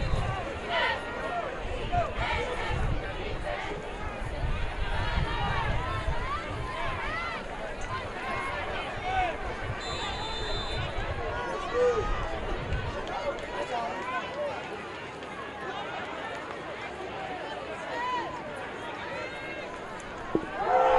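A large outdoor crowd cheers and chatters.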